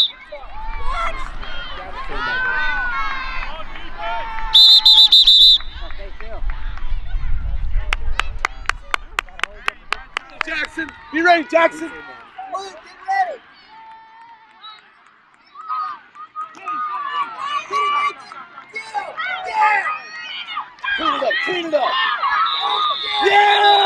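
Spectators shout and cheer from the stands outdoors.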